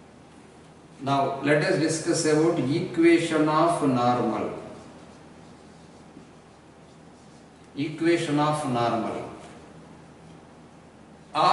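A man speaks calmly and clearly close by.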